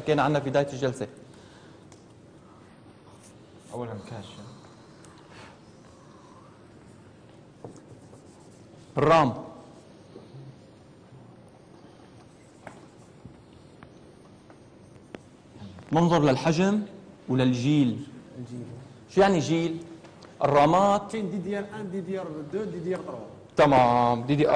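A man speaks calmly in a lecture, heard through a microphone in a room with some echo.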